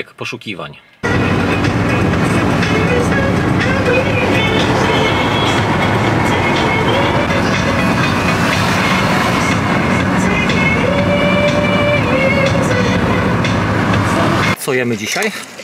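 A car drives along a highway with a steady roar of road noise.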